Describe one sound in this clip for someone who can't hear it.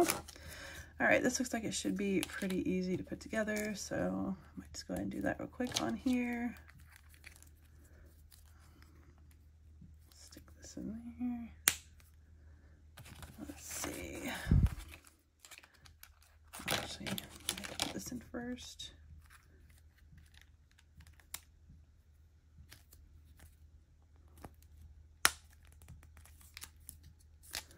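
Small plastic toy pieces click and clatter.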